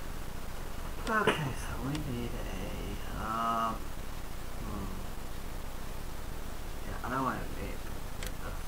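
A man speaks briefly and casually, close to a microphone.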